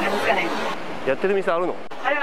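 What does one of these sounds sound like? A man asks questions, close to a microphone.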